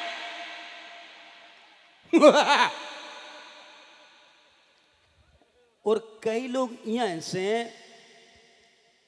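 A man sings loudly through a microphone, with a long echo trailing after each line.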